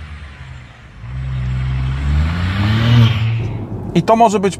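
A car drives past with its engine humming.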